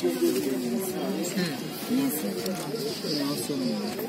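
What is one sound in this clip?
Paper pages rustle as a book is leafed open.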